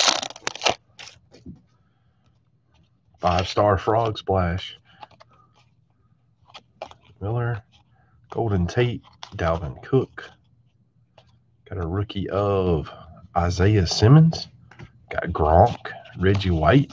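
Trading cards slide and rustle as they are flipped through by hand.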